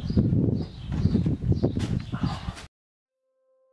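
Running feet thump quickly on a wooden deck.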